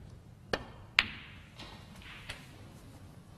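Snooker balls knock together with hard clacks.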